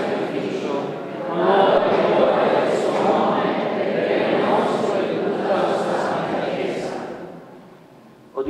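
A group of men chant together in an echoing hall.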